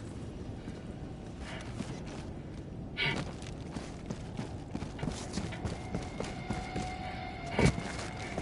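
Heavy footsteps tread steadily over grass and rock.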